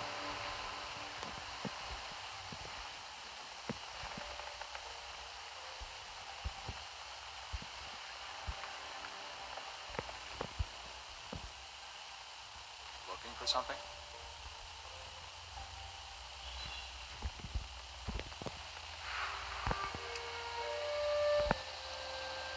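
Footsteps crunch at an even walking pace.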